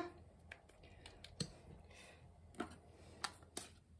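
A small plastic cap clicks open.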